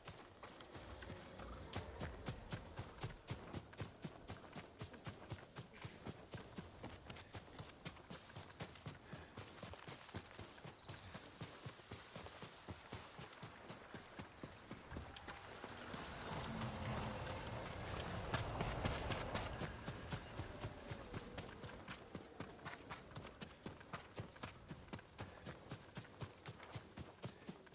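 Quick footsteps run over grass and leaves.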